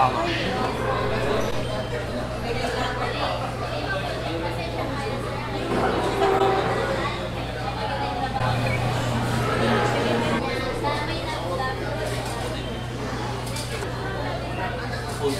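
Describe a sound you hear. Many people chatter in the background of a busy room.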